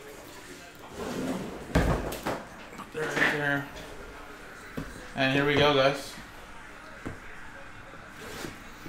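Cardboard boxes slide and rustle under handling.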